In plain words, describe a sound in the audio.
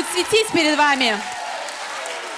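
A woman sings loudly into a microphone, her voice sliding in pitch.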